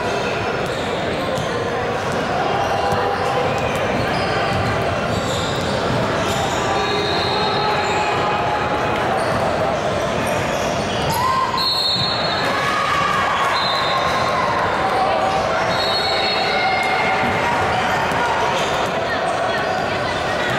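Spectators chatter and call out.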